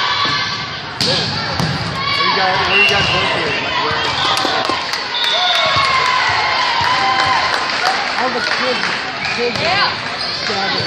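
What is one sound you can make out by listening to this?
A volleyball thumps against hands.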